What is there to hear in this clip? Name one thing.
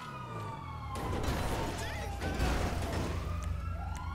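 A car crashes into a wall with a loud bang.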